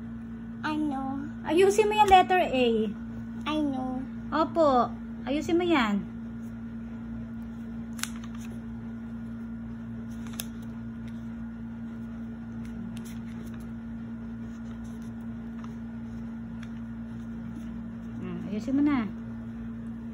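A young child speaks close by.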